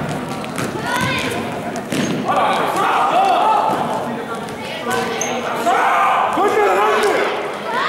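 Sneakers squeak on an indoor court in a large echoing hall.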